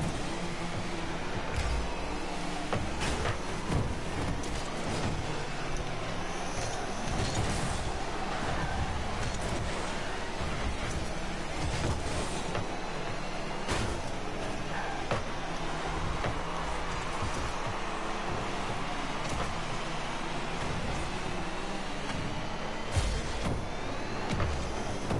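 A video game car engine hums and roars steadily.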